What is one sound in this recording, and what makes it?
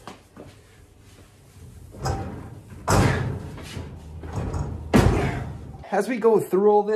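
A heavy cabinet rolls and bangs into place.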